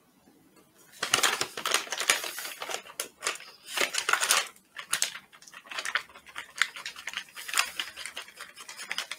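A plastic packet crinkles and rustles.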